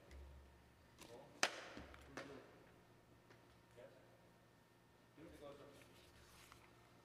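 A man speaks briefly and quietly in a large echoing hall.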